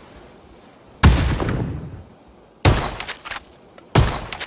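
Loud gunshots boom and echo indoors.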